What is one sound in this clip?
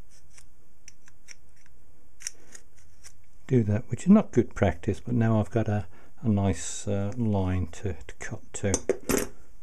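Metal parts click softly as they are handled.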